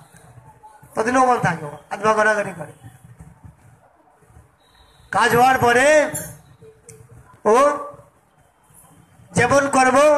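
A man chants loudly in short phrases nearby, with pauses between them.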